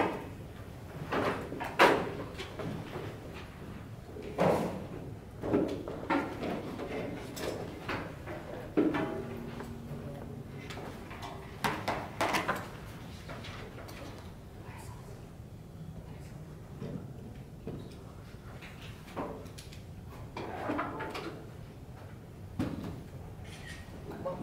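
A young man speaks calmly into a microphone in a large room.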